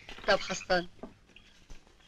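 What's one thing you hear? A woman shrieks loudly.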